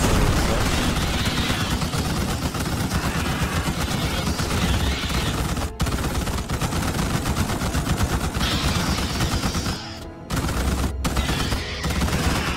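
Rapid gunfire rattles with only brief pauses.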